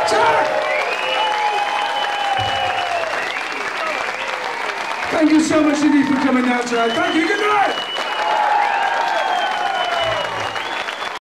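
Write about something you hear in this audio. A large crowd cheers and screams loudly.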